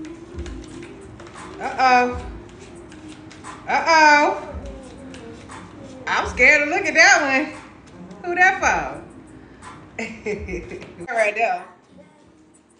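Cards shuffle and riffle in a woman's hands.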